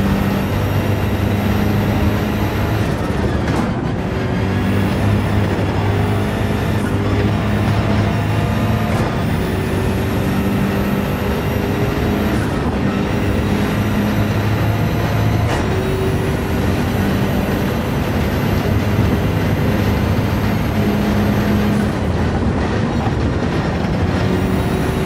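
A racing car engine roars at high revs and drops briefly with each gear change.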